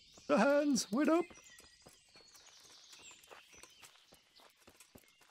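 Footsteps crunch steadily on a stony dirt path.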